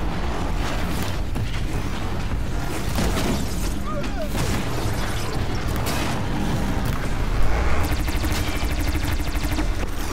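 A large robotic machine roars and clanks.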